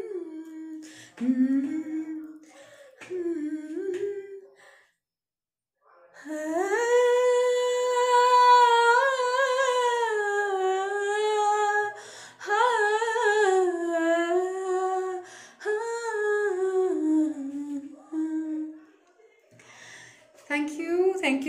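A young woman sings close to a microphone, holding long expressive notes.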